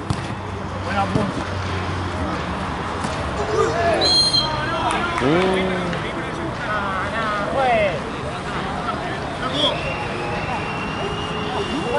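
Young men shout out across an outdoor pitch.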